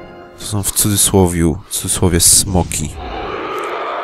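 A fireball bursts against a large beast.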